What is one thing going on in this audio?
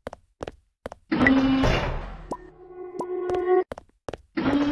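A heavy sliding door rumbles shut.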